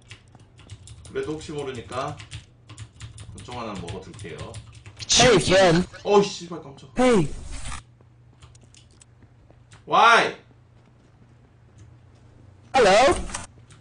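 A young man talks with animation into a close microphone, at times shouting.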